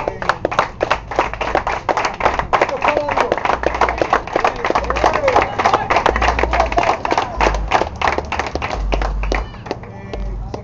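A crowd of people claps loudly and rapidly close by.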